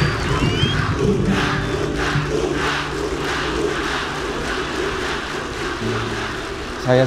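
A large crowd chants loudly in rhythm, heard from afar.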